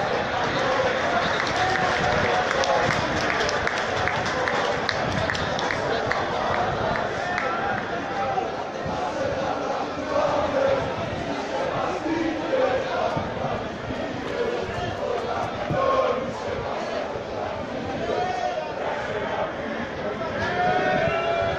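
Men in the crowd shout out close by.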